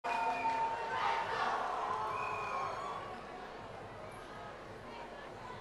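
A crowd cheers and shouts in a large echoing hall, then quiets down.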